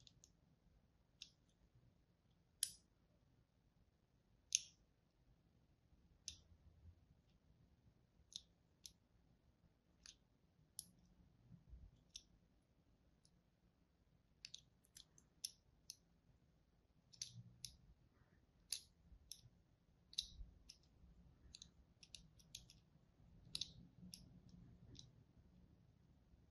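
A blade scratches and scores lines into soap with crisp, crackly clicks.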